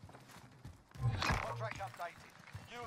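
A metal door swings open.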